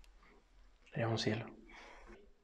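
A young man speaks softly, close by.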